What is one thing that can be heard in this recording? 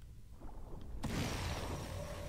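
A loud rushing blast of air bursts out and roars.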